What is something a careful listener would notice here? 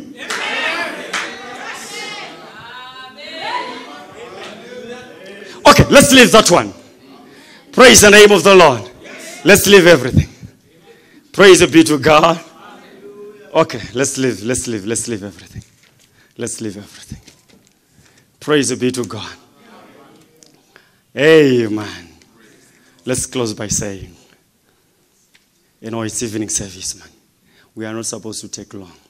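A man preaches into a microphone in emphatic bursts with pauses, in a large echoing hall.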